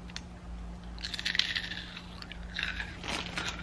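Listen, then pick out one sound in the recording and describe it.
A young woman crunches on a snack chip.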